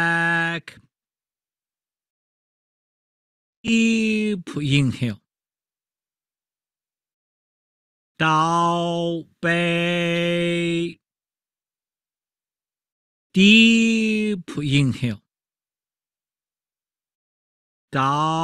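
A man sings long drawn-out notes through a microphone, in phrases with pauses between them.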